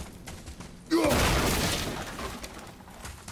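Wooden boards crash and splinter as they are smashed.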